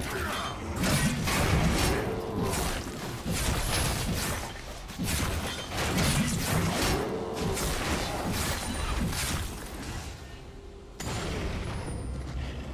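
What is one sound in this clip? Magical blasts and sharp hits crackle in a fast fight.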